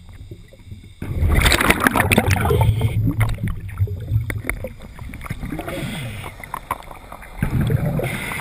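Air bubbles from a diver's breathing gurgle and rush loudly underwater.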